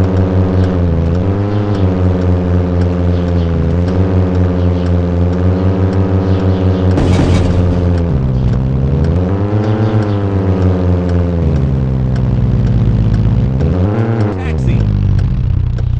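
A hatchback car engine revs up and eases off as the car drives.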